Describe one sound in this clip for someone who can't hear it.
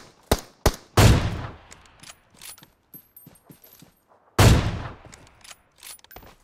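Rifle shots crack loudly, each with a booming echo.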